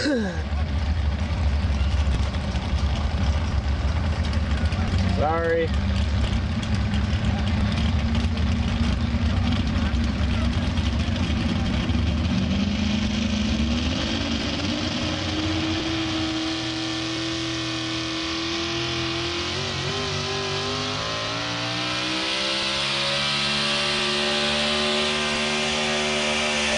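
A truck engine roars loudly under heavy strain.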